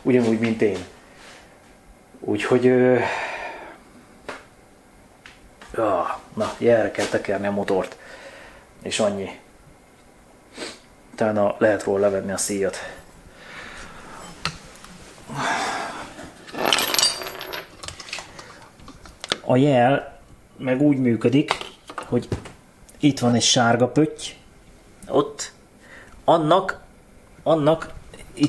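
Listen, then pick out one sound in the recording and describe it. A man talks calmly and close by, in short phrases with pauses.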